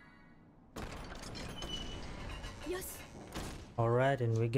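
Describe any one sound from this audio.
A heavy stone door rumbles and grinds open.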